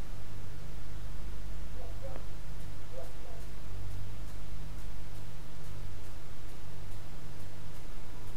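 A train rumbles low and steady in the distance.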